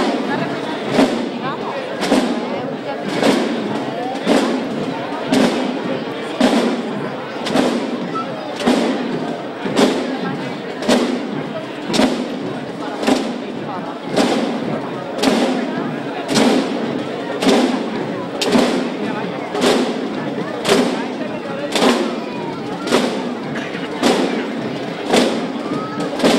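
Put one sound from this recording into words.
A drum beats slowly and steadily.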